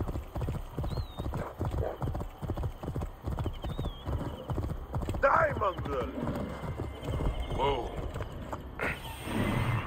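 A horse gallops with rapid, heavy hoofbeats on a dirt track.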